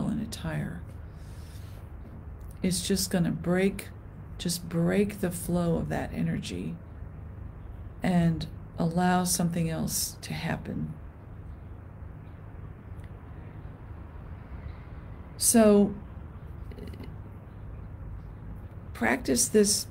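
An older woman speaks calmly and close to the microphone, with pauses.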